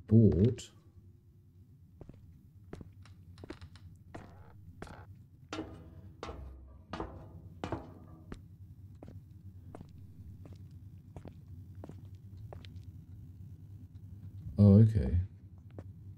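A man speaks briefly into a close microphone.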